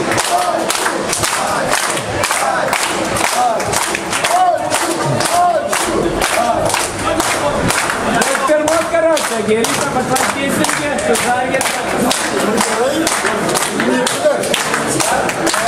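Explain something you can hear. A crowd of young men sings and chants loudly in an echoing hall.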